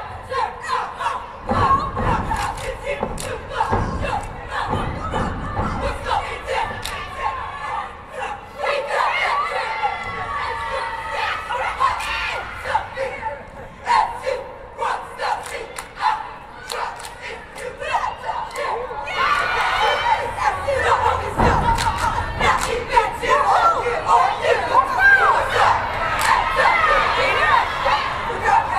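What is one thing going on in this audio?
Dancers clap their hands sharply.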